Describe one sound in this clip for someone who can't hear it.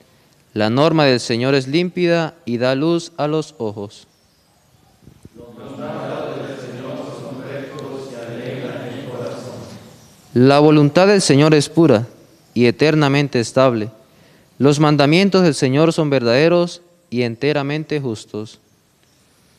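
A young man reads aloud calmly into a microphone.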